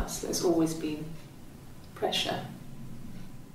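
A young woman speaks calmly and quietly nearby.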